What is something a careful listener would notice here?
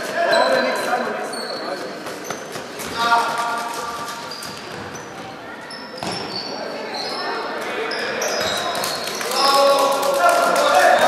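Young girls shout and call out to each other.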